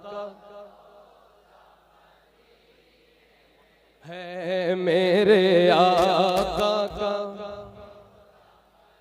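A young man sings a melodic chant through a microphone and loudspeakers, with reverberation.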